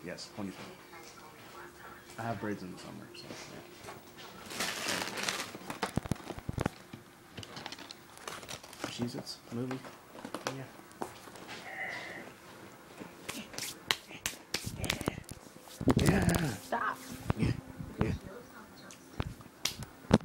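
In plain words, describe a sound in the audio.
A phone rubs and bumps against fabric.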